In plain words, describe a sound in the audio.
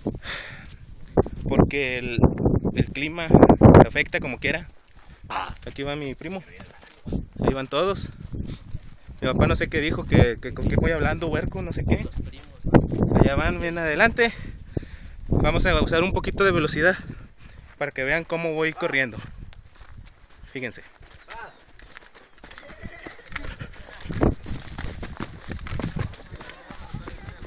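Footsteps crunch on a rocky dirt path.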